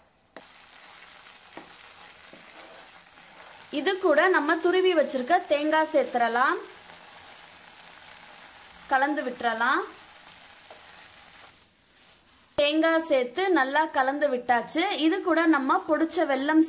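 A spatula scrapes and stirs food in a frying pan.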